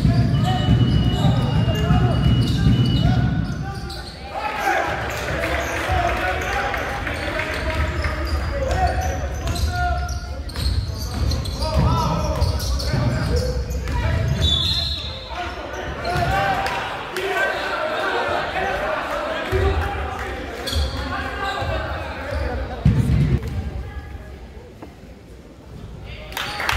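A crowd of spectators chatters and calls out, echoing around a large hall.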